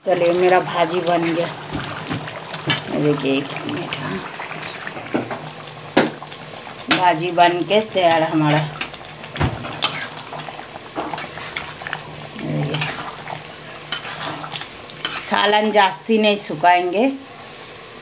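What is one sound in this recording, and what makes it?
A spatula scrapes and knocks against a metal pan.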